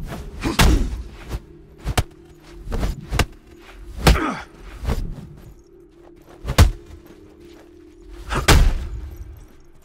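Heavy blows land with sharp thuds and whooshes in a fight.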